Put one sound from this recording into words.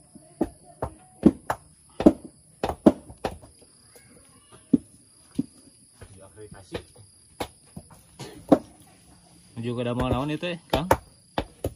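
Stones knock sharply against stone in irregular blows.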